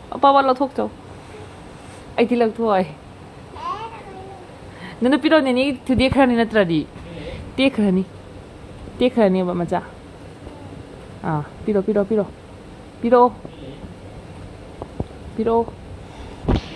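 A woman talks softly and playfully to a small child, close by.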